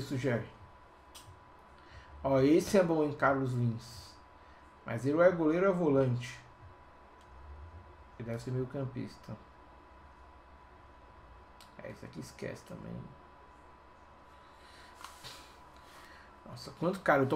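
A young man talks with animation into a nearby microphone, in short bursts.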